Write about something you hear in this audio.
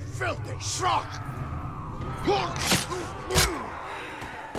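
Heavy blows thud during a scuffle.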